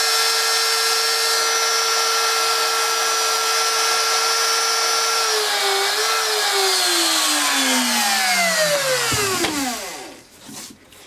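A router motor whines steadily at high speed, then winds down to a stop.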